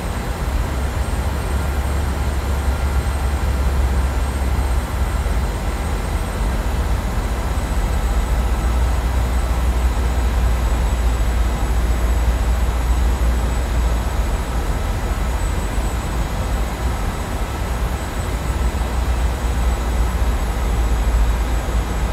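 Jet engines roar steadily with a deep, low rumble.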